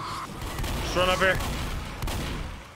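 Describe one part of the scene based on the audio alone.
A shotgun fires loudly.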